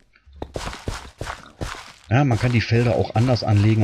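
A pickaxe chips at stone with short knocks.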